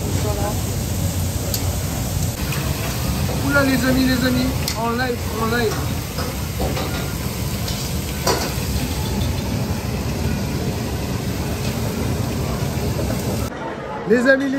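Food sizzles loudly on a hot griddle.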